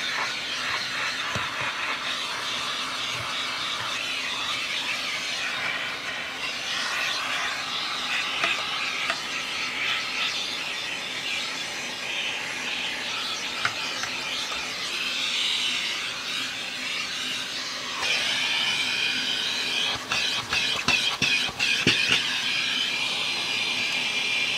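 A vacuum cleaner whooshes steadily as its hose sucks at plastic parts.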